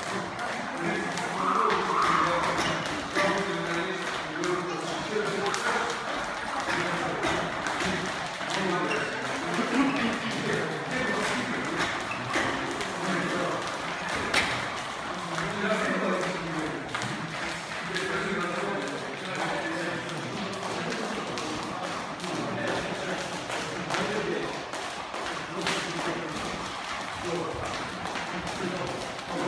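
Sneakers shuffle and squeak on a rubber floor.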